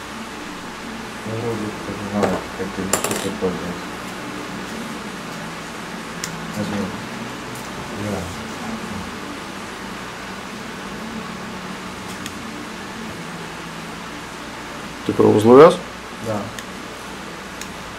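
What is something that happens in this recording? Small scissors snip thread close by.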